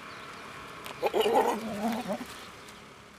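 A goat bleats loudly close by.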